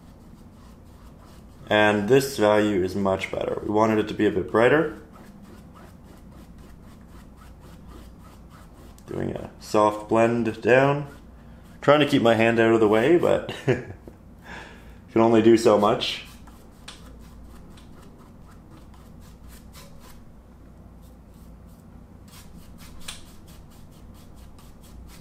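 A brush strokes softly across canvas.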